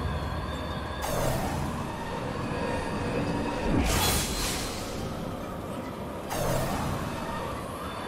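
Game magic effects whoosh in sudden bursts.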